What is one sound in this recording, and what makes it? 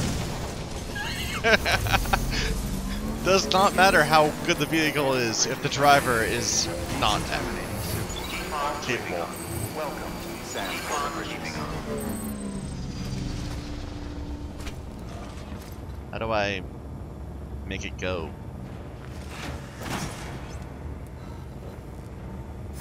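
A small motor hums as a trike drives along.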